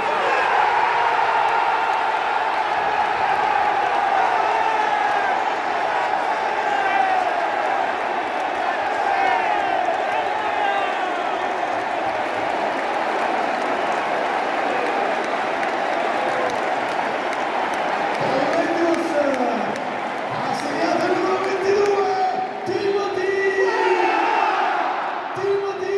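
A large crowd chants in unison in an open stadium.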